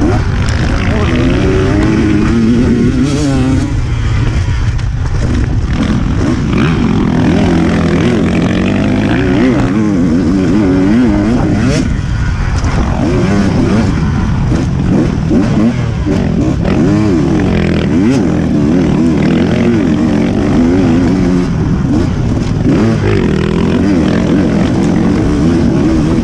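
A dirt bike engine revs and drones up close, rising and falling with the throttle.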